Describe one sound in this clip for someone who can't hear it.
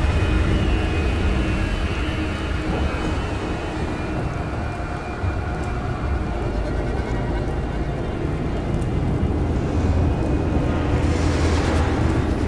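Flames crackle and roar nearby.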